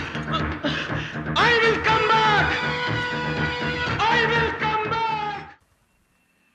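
A man cries out and pleads loudly.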